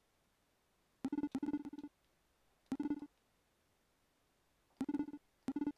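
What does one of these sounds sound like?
Lower electronic blips chatter in short bursts as game dialogue text types out.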